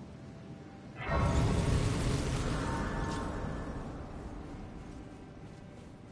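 A bright shimmering chime swells and slowly fades.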